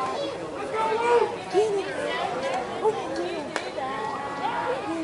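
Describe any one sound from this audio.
Several men call out and chatter across an open field.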